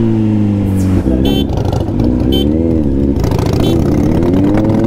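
A second motorcycle engine rumbles and revs nearby.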